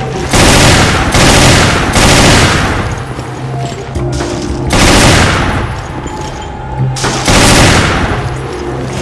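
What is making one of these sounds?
Gunshots boom loudly, one after another.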